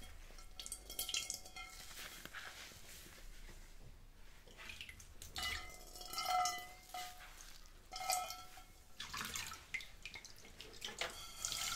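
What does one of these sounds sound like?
Water splashes and sloshes in a sink.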